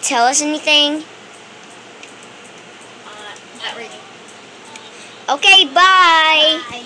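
A young child speaks in a high, playful voice close by.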